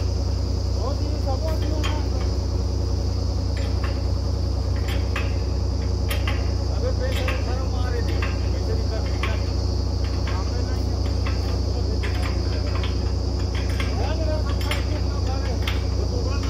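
A drilling rig engine drones loudly and steadily.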